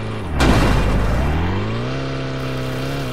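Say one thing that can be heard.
A car engine revs up with a rising whine.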